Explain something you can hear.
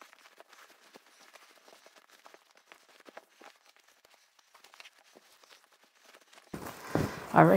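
Fabric rustles softly as hands fold and push it into a bag.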